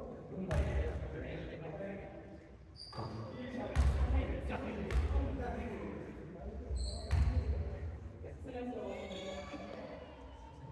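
Girls shout and call out to each other in a large echoing gym.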